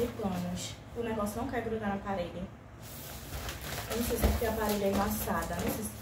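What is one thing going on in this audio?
A foil balloon crinkles and rustles in a woman's hands.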